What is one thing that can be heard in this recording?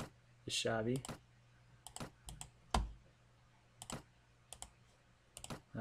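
Soft menu clicks sound several times.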